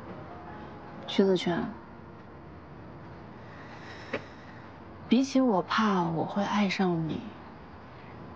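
A young woman speaks softly and emotionally up close.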